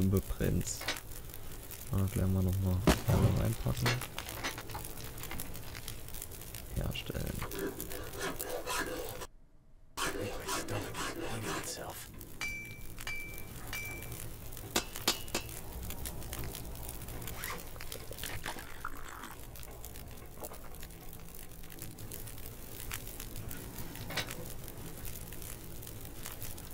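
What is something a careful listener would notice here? Coals crackle in a fire.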